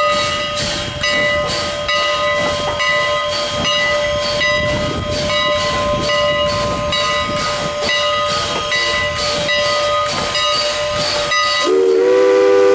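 A steam locomotive chugs along in rapid, rhythmic puffs.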